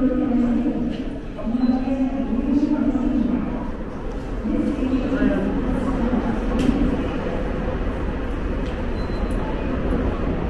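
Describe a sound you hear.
Footsteps tap on a hard floor in an echoing underground hall.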